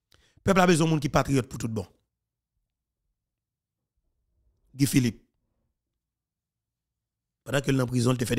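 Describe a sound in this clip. A man speaks with animation close to a microphone, in short bursts with pauses.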